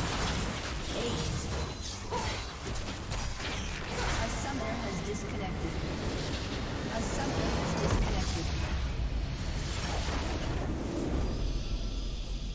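Game spell effects crash and explode in a fight.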